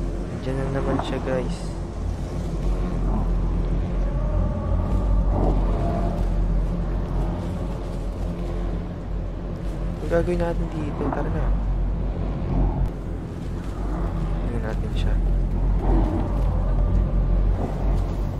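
Small footsteps rustle through grass.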